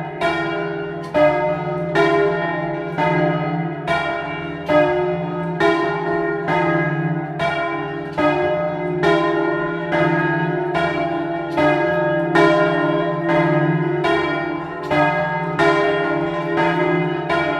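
Several large bells ring loudly close by, their tones overlapping and humming on.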